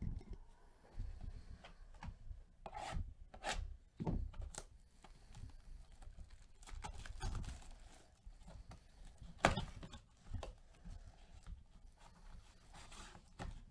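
Cardboard packaging rustles and scrapes under gloved hands.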